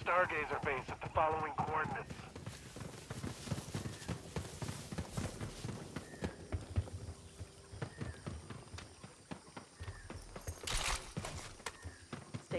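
Footsteps tread over dirt and wooden boards.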